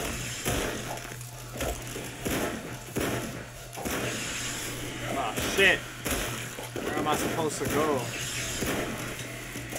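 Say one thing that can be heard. Jets of flame roar in bursts.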